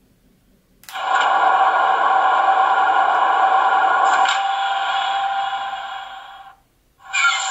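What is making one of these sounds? A model diesel locomotive's speaker plays a whirring cooling fan.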